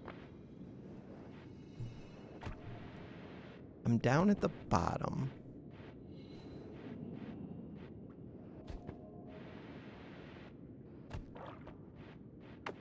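Short electronic game sound effects blip and crackle now and then.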